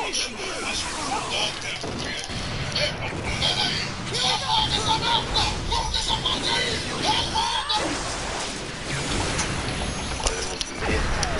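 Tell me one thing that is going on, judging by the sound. Loud energy blasts roar and crackle.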